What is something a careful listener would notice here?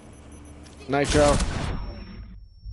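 A gun fires in a short loud burst.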